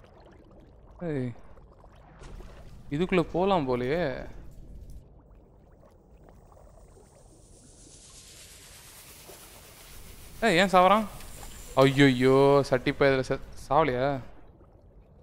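A young man talks with animation into a close microphone, in bursts with pauses.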